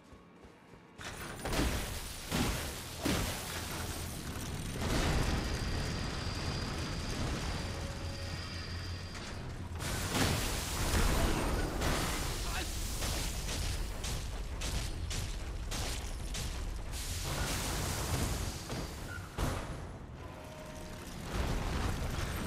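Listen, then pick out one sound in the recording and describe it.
A huge creature crashes and slams its wheels against stone.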